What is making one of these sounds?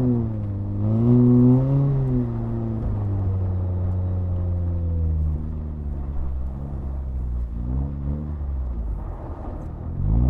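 A car engine revs up and down from inside the car.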